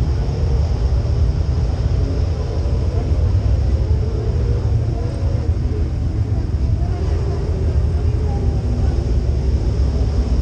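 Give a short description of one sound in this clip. A dirt late model race car's V8 engine idles with a deep rumble, heard from inside the cockpit.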